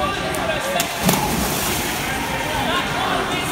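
A swimmer splashes hard into the water.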